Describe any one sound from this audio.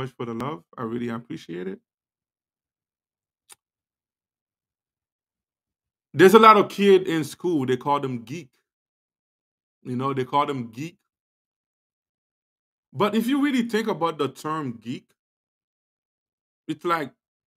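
A man speaks with animation into a close microphone, pausing between phrases.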